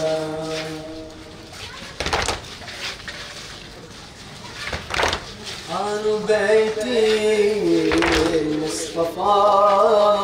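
A young man chants loudly into a microphone, heard through a loudspeaker outdoors.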